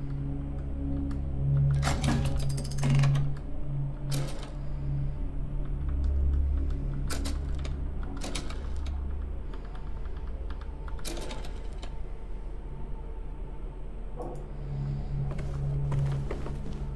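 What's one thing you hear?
Low, droning game sounds play from a small speaker.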